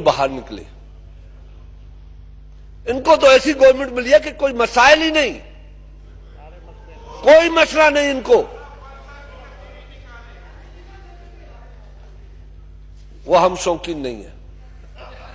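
A middle-aged man speaks forcefully into a microphone, with long pauses.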